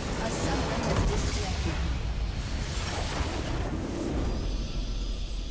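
Game battle effects crash and clash loudly.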